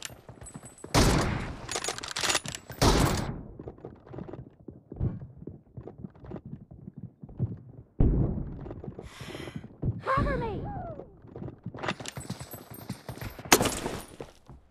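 Gunshots crack in quick bursts nearby.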